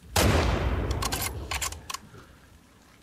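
A rifle bolt clicks as it is worked.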